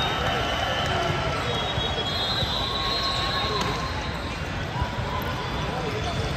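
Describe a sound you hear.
A crowd chatters throughout a large echoing gym.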